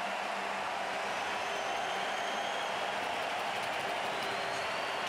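A large crowd cheers loudly in a big arena.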